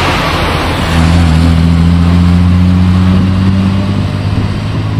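A Maserati coupe's engine revs as the car pulls away.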